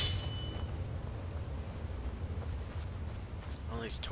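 A magic spell crackles and hums softly.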